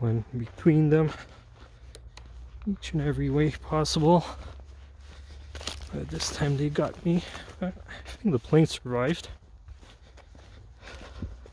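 Footsteps crunch through dry crop stubble.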